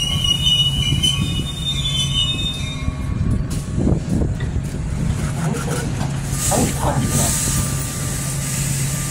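A train engine hums steadily.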